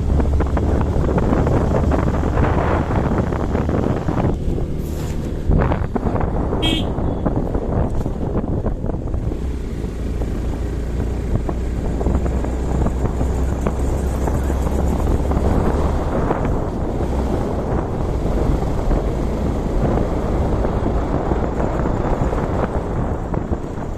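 Wind rushes loudly past a motorcycle rider.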